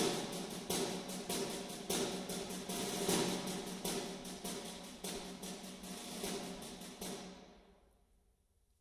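A bagpipe plays a tune in a reverberant hall.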